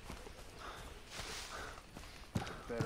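Leafy branches rustle briefly against someone pushing through.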